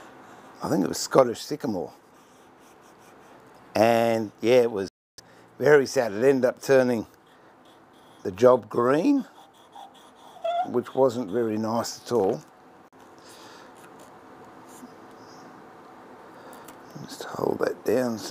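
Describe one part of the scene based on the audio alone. A hand tool scrapes against wood.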